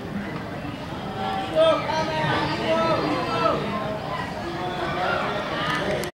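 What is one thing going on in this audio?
Young people chatter and call out in the distance, outdoors.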